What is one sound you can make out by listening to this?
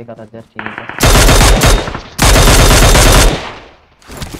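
Loud bursts of gunfire ring out close by.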